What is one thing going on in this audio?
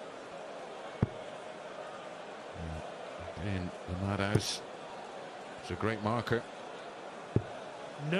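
A dart thuds sharply into a board.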